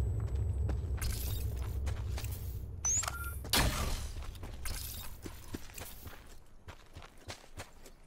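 Footsteps crunch and rustle through dry grass.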